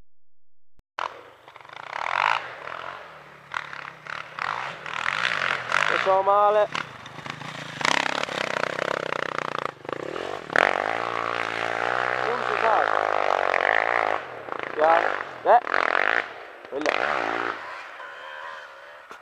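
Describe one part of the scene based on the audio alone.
A dirt bike engine revs and roars.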